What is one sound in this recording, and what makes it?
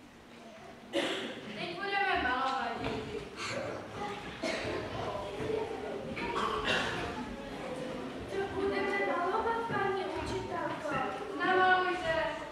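Children chatter and call out together.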